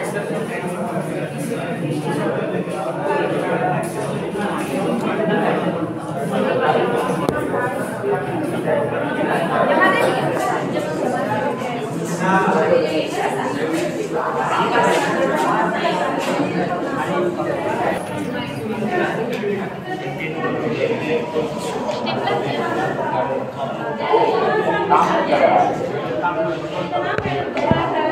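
Many voices chatter in a busy room.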